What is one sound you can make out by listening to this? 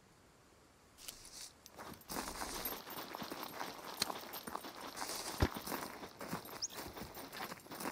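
Footsteps rustle and crunch through dry grass and brush.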